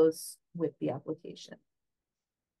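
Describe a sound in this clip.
A woman speaks briefly over an online call.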